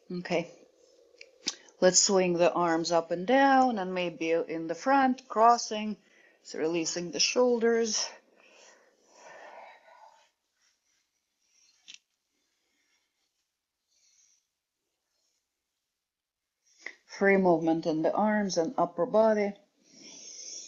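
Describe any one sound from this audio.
A woman speaks calmly and clearly close to a microphone, guiding along.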